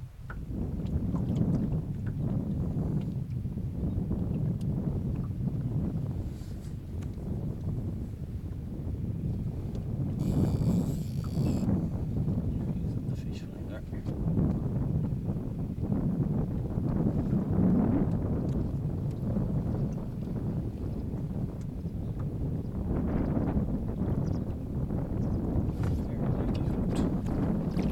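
Wind blows hard against a microphone outdoors.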